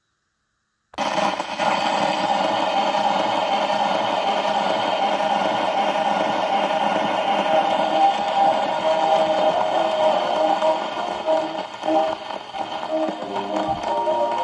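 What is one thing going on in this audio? An old gramophone plays a record of orchestral music, thin and crackly through its horn.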